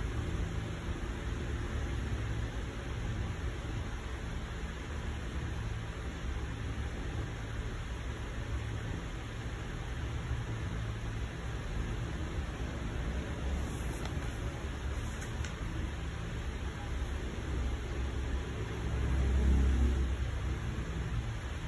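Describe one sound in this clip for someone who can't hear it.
A printer hums and whirs steadily close by.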